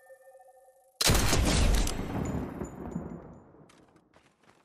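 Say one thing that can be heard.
A rifle fires a single loud shot that booms and slowly echoes away.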